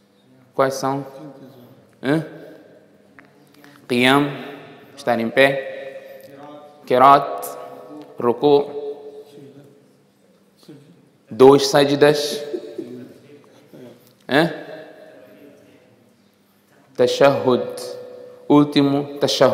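A man speaks calmly through a microphone, in short phrases with pauses, in a slightly echoing room.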